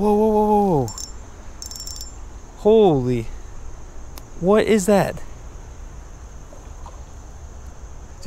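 A fishing reel whirs as its handle is wound.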